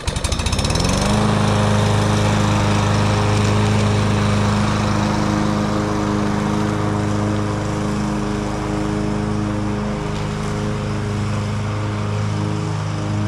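A lawn mower engine runs with a loud, steady drone.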